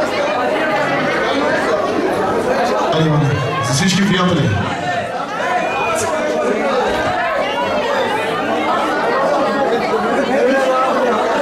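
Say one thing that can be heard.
A crowd of men and women talk all around in a busy room.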